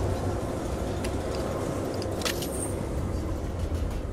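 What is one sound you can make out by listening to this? Metal bolt cutters snap through a lock with a sharp click.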